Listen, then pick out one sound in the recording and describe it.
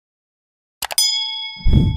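A bright bell chime rings out and slowly dies away.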